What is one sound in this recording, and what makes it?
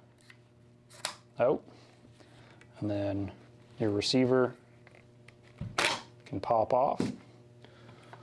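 Metal parts click and clack as they are taken apart.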